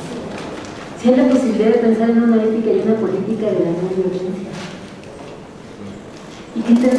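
An older woman speaks calmly through a microphone.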